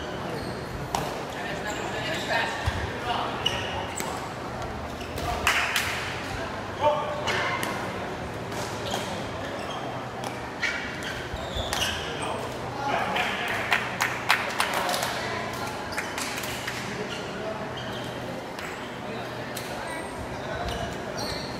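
A ball thuds off feet and the floor.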